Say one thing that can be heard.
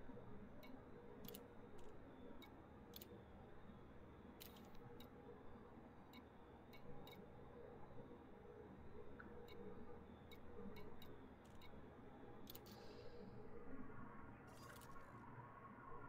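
Short electronic clicks tick one after another.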